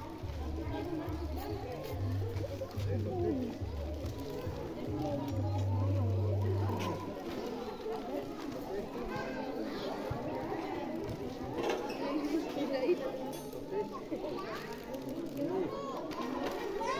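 A crowd of women and children chatter nearby outdoors.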